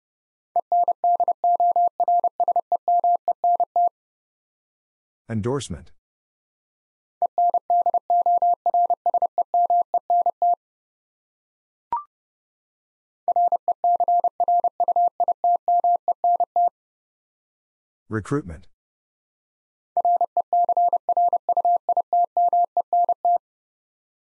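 Morse code beeps out in quick, even-pitched bursts.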